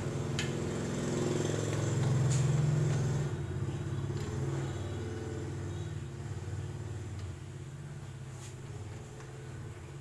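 A motorcycle engine idles with a steady low rumble, growing a little quieter toward the end.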